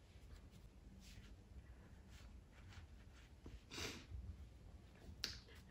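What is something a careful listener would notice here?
A woman sniffles and cries quietly.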